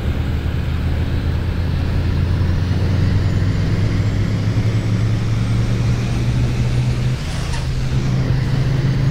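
A bus engine drones steadily and slowly rises in pitch as the bus speeds up.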